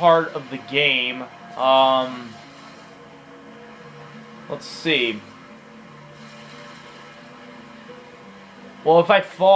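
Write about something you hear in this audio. Electronic game music plays quietly through a television speaker.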